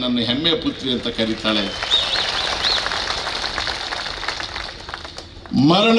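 An elderly man speaks forcefully into a microphone over a loudspeaker.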